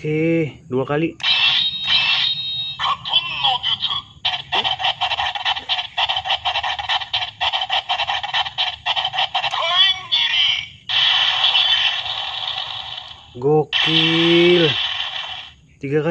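A toy plays loud electronic sound effects through a tinny little speaker.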